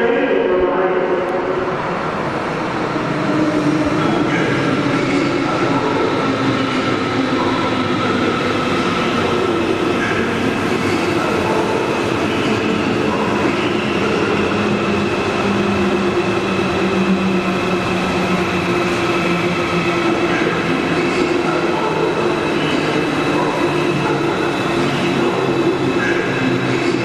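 A high-speed train rolls slowly through a large echoing station hall, its motors whining.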